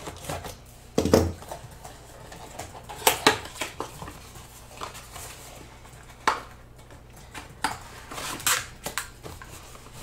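A cardboard box is torn open with sharp rips and rustles.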